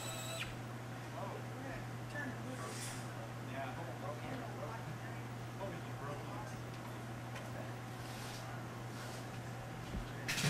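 A small group of men and women chatter and murmur nearby.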